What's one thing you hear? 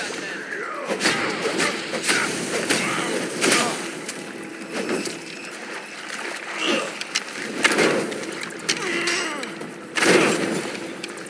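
Explosions burst and crackle in quick succession.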